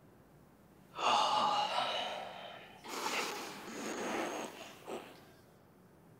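A young man strains and grunts with effort.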